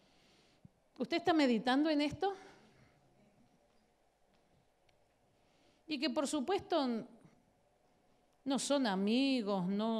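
A woman speaks expressively into a microphone, with long pauses.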